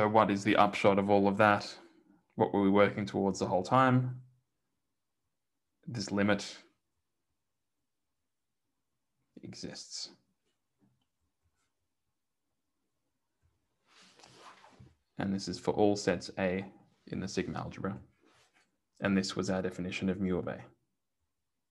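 A man lectures calmly into a close microphone, in short bursts with pauses.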